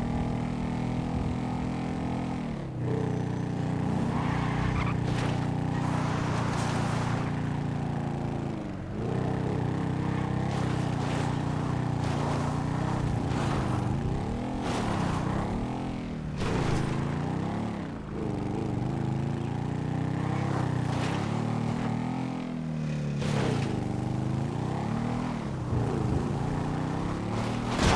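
A motorcycle engine revs up and down continuously.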